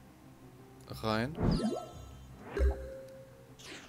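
Short electronic game chimes sound as cards are played.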